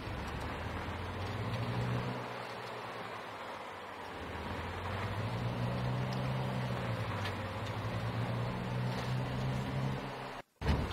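A car engine hums steadily, rising and falling as it drives.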